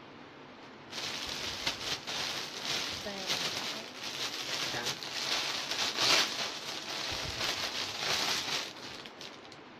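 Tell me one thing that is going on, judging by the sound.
Fabric rustles as a dress is handled and folded.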